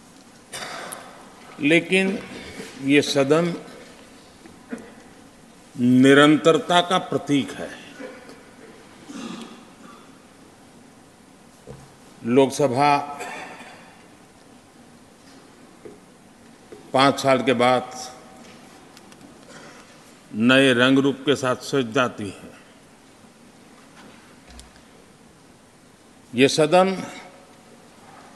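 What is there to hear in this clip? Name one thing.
An elderly man speaks slowly and deliberately through a microphone, with long pauses.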